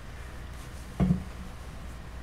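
A small object is set down on a wooden stand with a knock.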